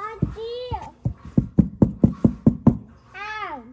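A fist knocks rapidly on a cardboard box.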